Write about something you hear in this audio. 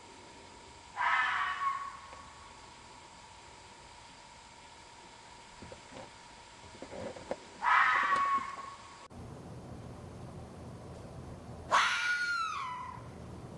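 A fox gives a shrill, rasping scream several times.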